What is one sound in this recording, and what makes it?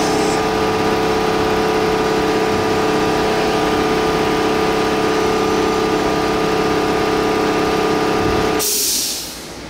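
A CNC lathe runs with a steady whining hum.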